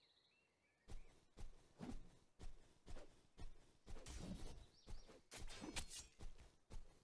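Footsteps thud steadily on grass.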